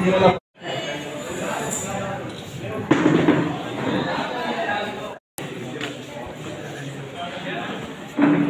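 A crowd of women chatters and murmurs nearby.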